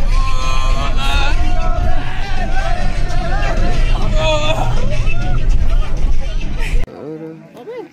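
Several young men talk loudly and with animation nearby.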